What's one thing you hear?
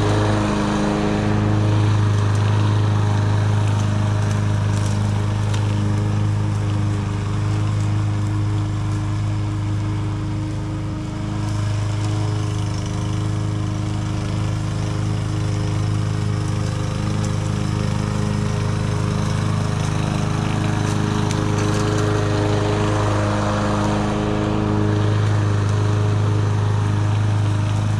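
A petrol lawn mower engine drones steadily, fading as it moves away and growing louder as it comes back.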